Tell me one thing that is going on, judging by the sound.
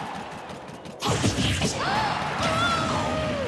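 A loud video game blast booms and whooshes.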